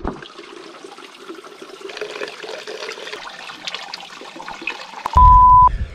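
Water runs from a tap into a plastic bottle.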